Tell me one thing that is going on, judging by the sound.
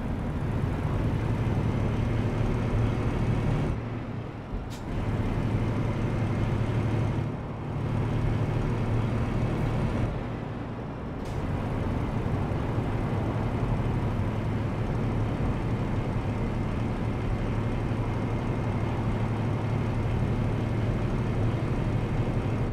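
A diesel truck engine drones, heard from inside the cab while cruising.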